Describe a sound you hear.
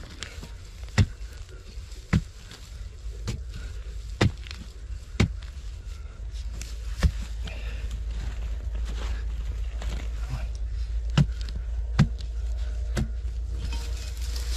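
A drill auger grinds steadily into dry soil.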